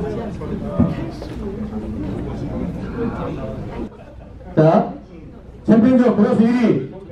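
A man speaks through a microphone and loudspeaker in an echoing room.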